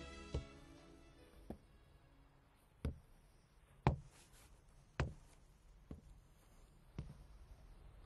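Hard-soled shoes step slowly across a concrete floor.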